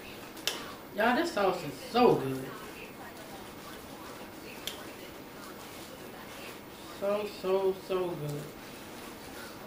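A woman speaks briefly and casually close by.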